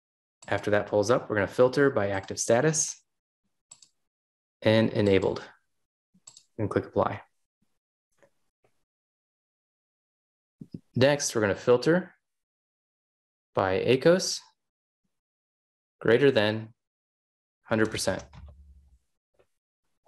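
A man talks calmly into a close microphone, in short bursts with pauses.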